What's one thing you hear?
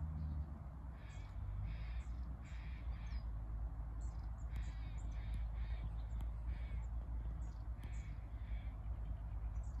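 Ducks quack on the water now and then.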